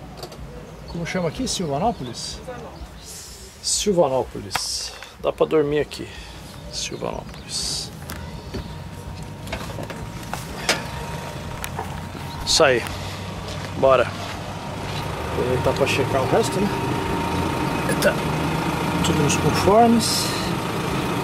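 An older man talks close by, calmly explaining.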